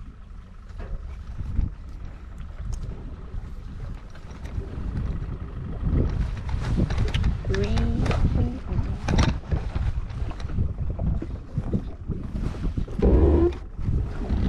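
Water laps and splashes against a boat's hull.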